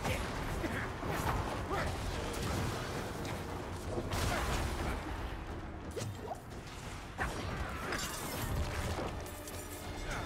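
Spells and weapon strikes crash and boom in a fierce battle.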